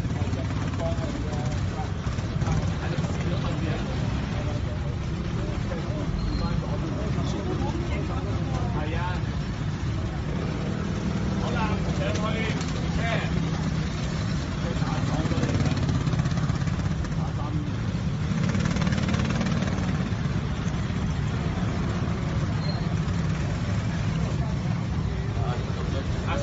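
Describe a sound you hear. A motorcycle engine hums and revs nearby.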